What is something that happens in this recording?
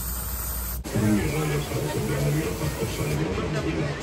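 An airbrush hisses as it sprays paint.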